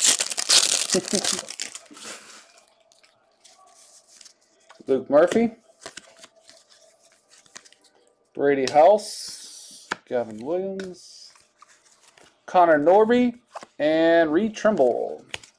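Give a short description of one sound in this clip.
Trading cards rustle and slide as hands flip through them.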